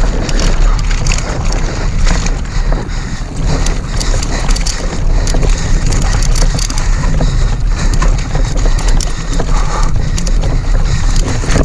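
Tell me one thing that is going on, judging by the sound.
A bicycle rattles and clatters over roots and stones.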